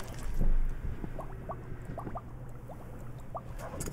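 Water trickles into a canteen.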